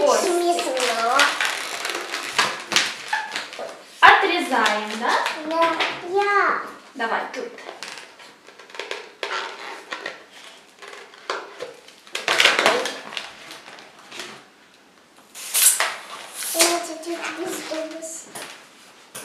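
A little girl talks quietly close by.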